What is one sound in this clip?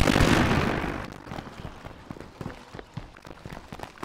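Footsteps run on a paved road.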